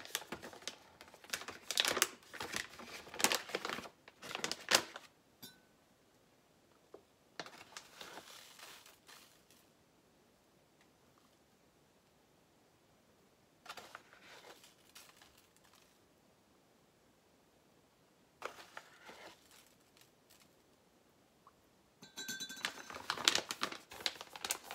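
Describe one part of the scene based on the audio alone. A plastic pouch crinkles and rustles close by.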